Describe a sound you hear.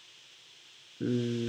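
A young man speaks calmly, close to a microphone.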